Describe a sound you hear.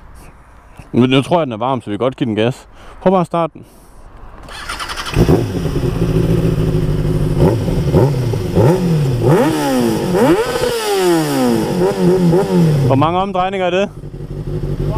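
A sport motorcycle engine revs sharply up and down, close by.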